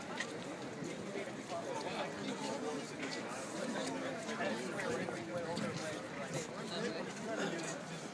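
Footsteps shuffle along a walkway.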